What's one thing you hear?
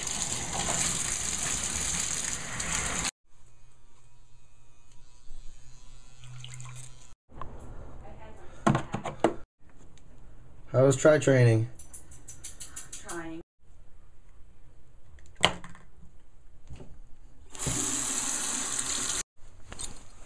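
Water pours from a tap into a basin.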